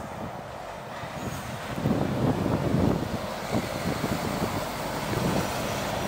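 A lorry engine rumbles close by as it drives past.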